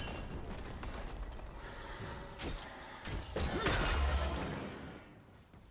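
Game spells whoosh and crackle in sharp bursts.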